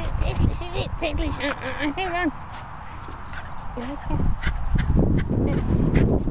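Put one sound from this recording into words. A small dog growls playfully up close.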